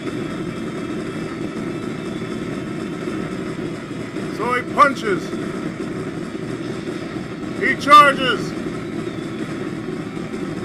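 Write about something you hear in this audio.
Rapid gunfire crackles steadily.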